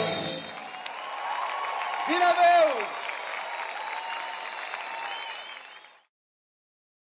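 A large crowd cheers.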